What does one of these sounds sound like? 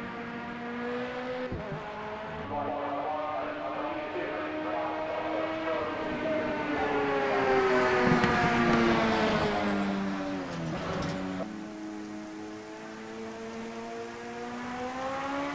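A racing car engine roars at high revs and shifts gears.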